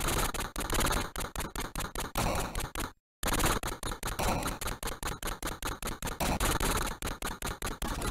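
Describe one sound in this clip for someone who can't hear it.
Electronic music plays from a video game.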